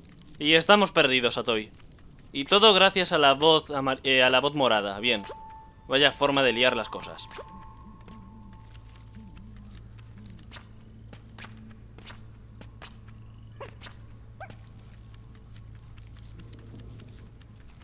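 Light footsteps patter steadily on soft ground.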